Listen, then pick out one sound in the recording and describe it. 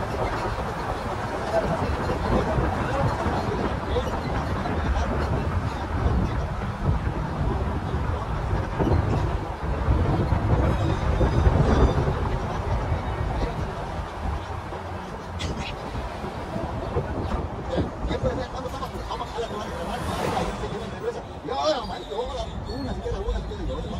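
Wind buffets loudly against the car.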